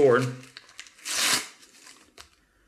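A hand rubs over paper.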